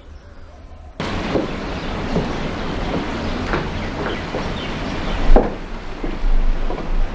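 A man and a woman talk to each other.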